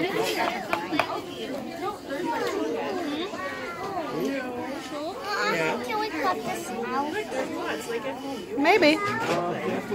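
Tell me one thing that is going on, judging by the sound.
Many young children chatter and call out nearby.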